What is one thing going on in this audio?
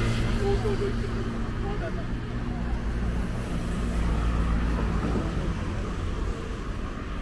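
A car drives by close at hand.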